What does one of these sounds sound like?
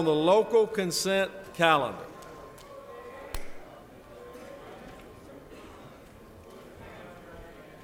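Several men and women chat quietly in a large echoing hall.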